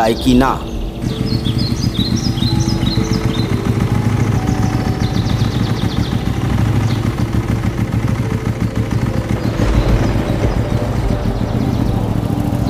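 A motorcycle engine rumbles steadily as it rides closer.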